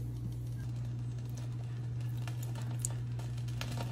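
Liquid pours and splashes into a pot.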